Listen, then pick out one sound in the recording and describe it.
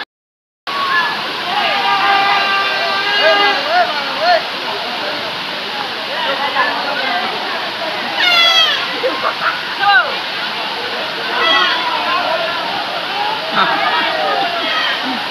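Water rushes over a rock slope.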